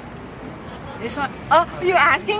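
A young woman exclaims excitedly close by.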